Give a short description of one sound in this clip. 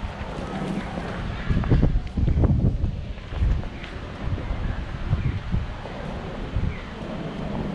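Traffic hums steadily along a city street.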